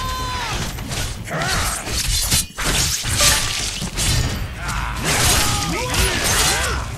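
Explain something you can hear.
Blades swish and strike in a fight.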